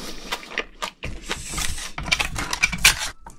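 Shells scrape and clatter as a gloved hand handles them.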